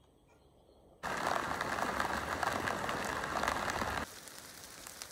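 Rain patters steadily on water outdoors.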